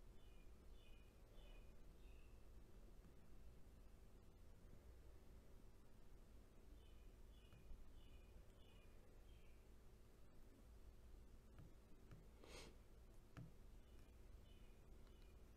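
Liquid trickles from a plastic bottle into a cup.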